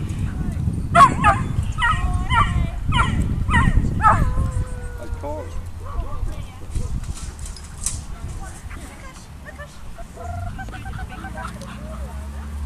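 A young woman talks to a puppy with animation, close by.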